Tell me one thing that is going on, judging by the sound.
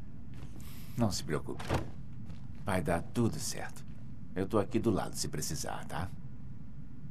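A second man speaks calmly and gently, close by.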